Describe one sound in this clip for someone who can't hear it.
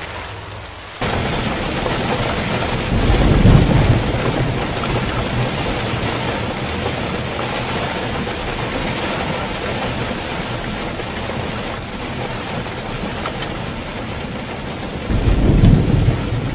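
Heavy rain pours steadily on a car.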